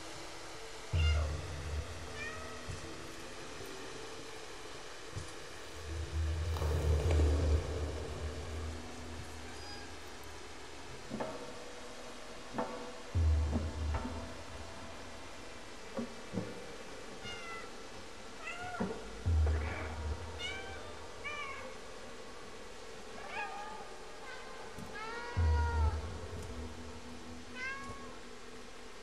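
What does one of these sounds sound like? A cat meows repeatedly.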